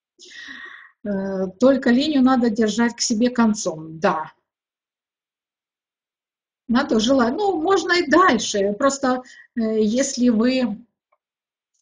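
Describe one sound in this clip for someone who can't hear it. An elderly woman speaks calmly and close to a microphone, with pauses.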